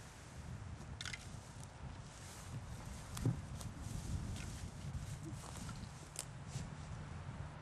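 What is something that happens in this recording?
Dry grass stems rustle and snap close by.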